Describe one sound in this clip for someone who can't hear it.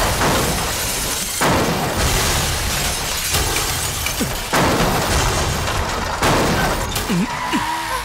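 Heavy explosions blast and debris crashes down.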